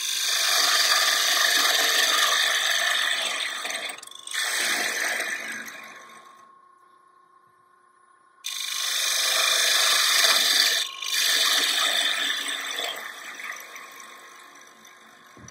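A gouge scrapes and hisses against wood spinning on a lathe.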